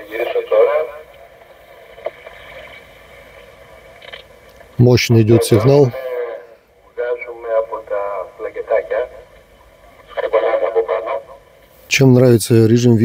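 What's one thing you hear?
A man's voice comes through a radio loudspeaker, thin and crackly, in short bursts.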